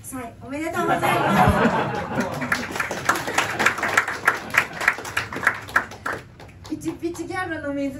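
A young woman sings into a microphone, heard through loudspeakers.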